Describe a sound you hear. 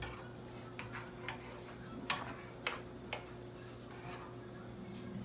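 Food sizzles softly in a pan.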